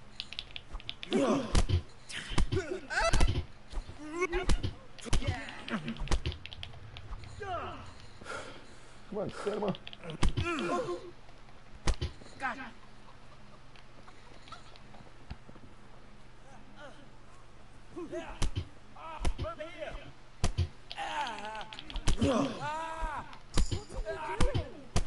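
A man grunts and groans while fighting.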